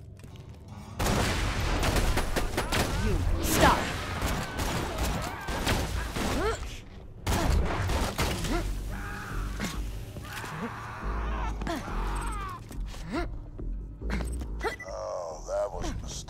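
Rifle shots crack loudly in rapid bursts.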